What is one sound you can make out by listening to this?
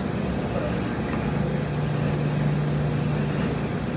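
Clothes rustle as laundry is loaded into a front-loading washer.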